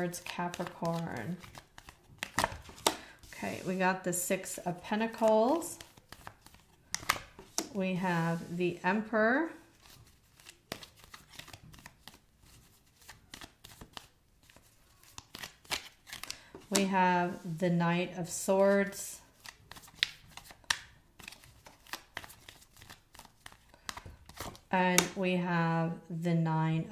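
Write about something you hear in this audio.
Playing cards are shuffled, riffling and flicking.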